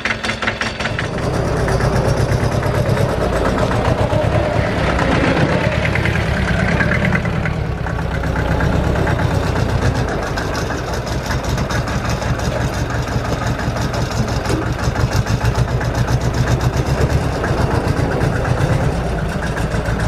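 A tractor engine rumbles close by with a deep, rhythmic chug.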